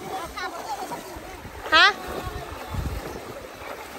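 Water splashes as a person wades through a shallow stream.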